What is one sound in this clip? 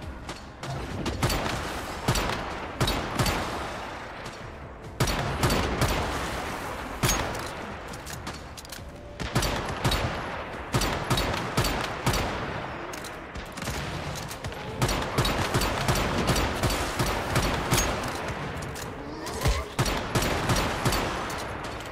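Blasts boom and rumble.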